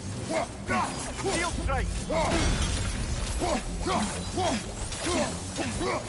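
Fire roars in a burst.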